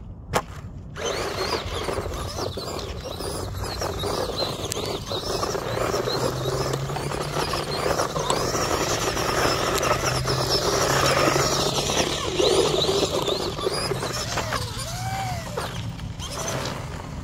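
A small electric motor whines loudly as a toy car races past.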